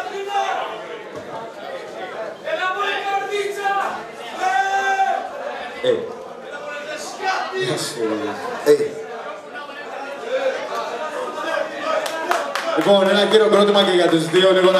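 A young man raps loudly into a microphone.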